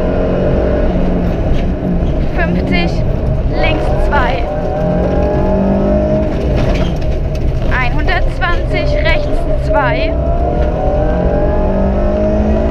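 A car engine roars loudly and revs up and down.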